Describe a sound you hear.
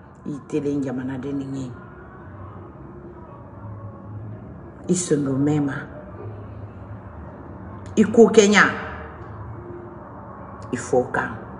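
A woman speaks with emotion in short bursts, close to a microphone.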